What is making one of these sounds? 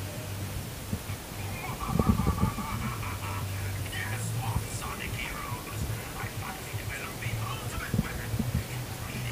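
A man speaks with animation through a small loudspeaker.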